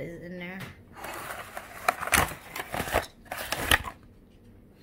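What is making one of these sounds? A paper lid rustles and crinkles as it is peeled off a foil tray.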